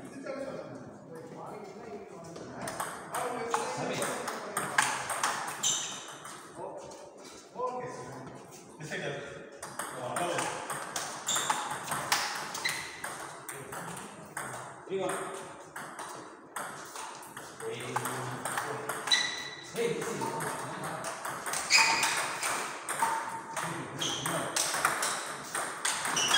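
Table tennis balls click against paddles and tables in a quick back-and-forth rhythm.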